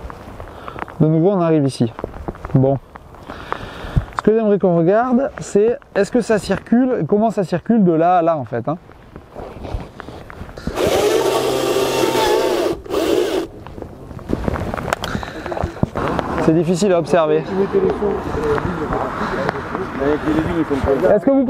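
A young man speaks calmly close by, outdoors.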